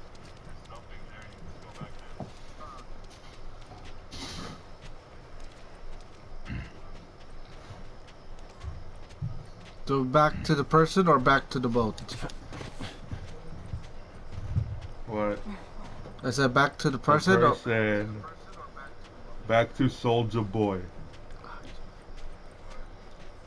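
Footsteps crunch slowly over grass and gravel.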